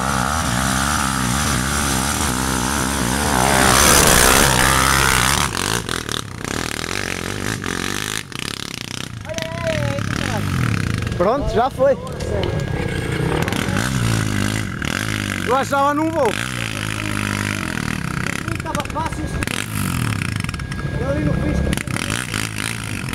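A quad bike engine revs hard, climbing a steep track under load.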